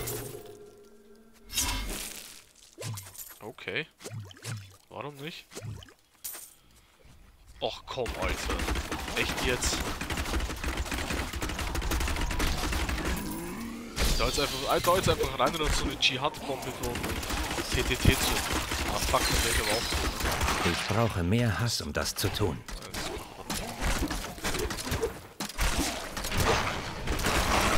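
Blows strike and creatures shriek in a fight.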